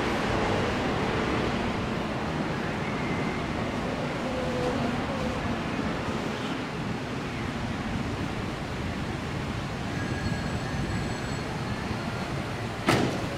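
A bus rumbles along a street in the distance.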